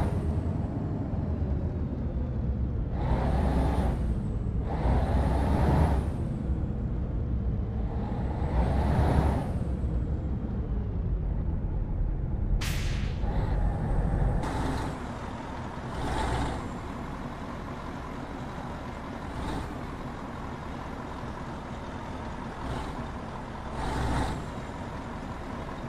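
A heavy truck engine rumbles and revs in bursts.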